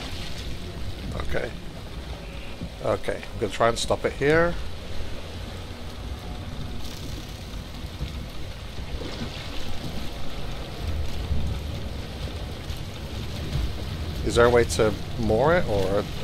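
Water laps softly against a wooden boat's hull.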